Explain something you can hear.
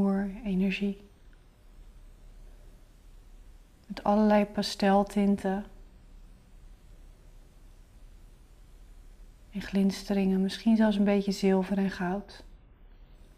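A young woman speaks calmly and close, in short bursts with pauses.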